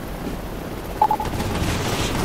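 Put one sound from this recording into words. A heavy body lands on a rooftop with a thud.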